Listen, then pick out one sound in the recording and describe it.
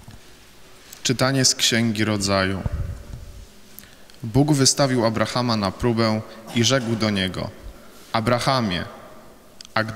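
A young man speaks calmly through a microphone in a large echoing hall.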